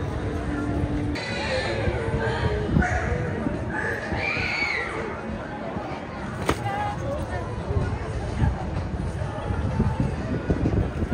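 A crowd chatters and murmurs outdoors.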